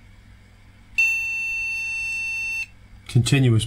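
A multimeter gives a steady high beep.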